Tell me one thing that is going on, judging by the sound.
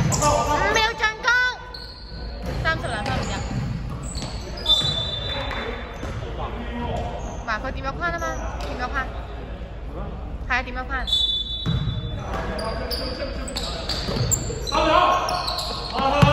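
Young men shout and call out across an echoing court.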